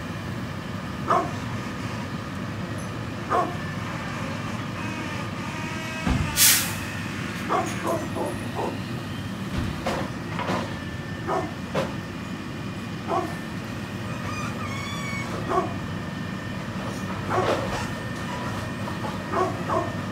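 A dog barks repeatedly outdoors.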